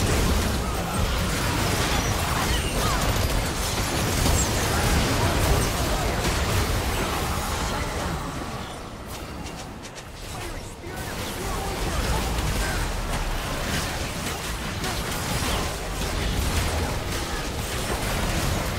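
Magic blasts and weapon hits crackle and boom in a fast fight.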